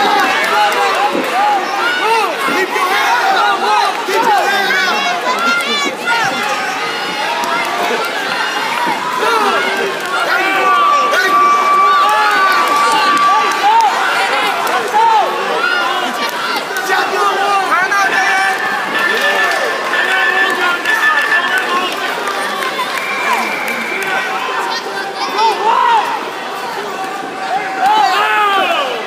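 A crowd in a large echoing arena shouts and cheers throughout.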